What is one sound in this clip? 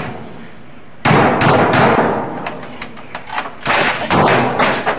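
A man bangs a keyboard hard against a computer monitor.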